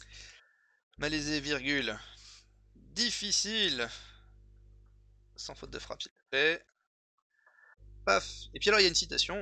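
A young man speaks calmly and close to a microphone.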